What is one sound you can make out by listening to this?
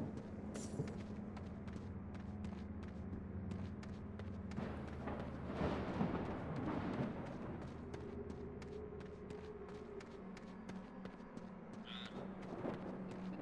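Footsteps tap on wooden planks.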